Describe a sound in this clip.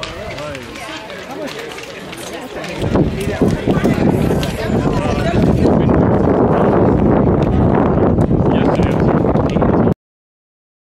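Young boys chatter and call out outdoors.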